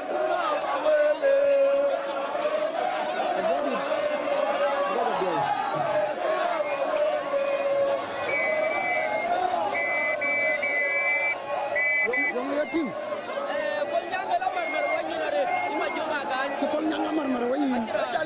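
A large crowd sings and chants loudly outdoors.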